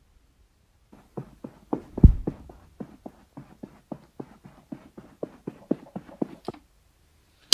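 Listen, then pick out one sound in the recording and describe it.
Quick footsteps tap steadily.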